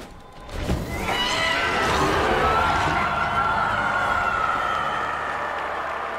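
A magic blast whooshes and hums.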